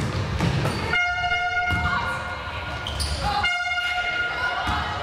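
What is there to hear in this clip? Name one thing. A referee's whistle blows sharply, twice, in an echoing hall.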